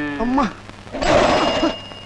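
A bicycle crashes to the ground with a clatter.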